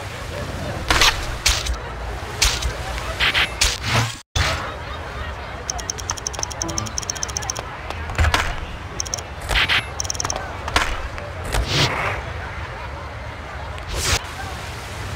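A skateboard clacks sharply as it lands tricks.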